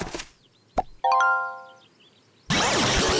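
A computer error chime sounds.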